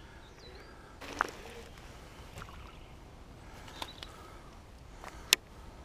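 A fishing reel clicks and ticks close by.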